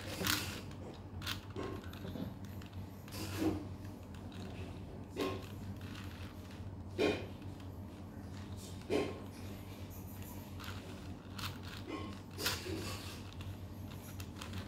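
Plastic puzzle cube layers click as they are twisted.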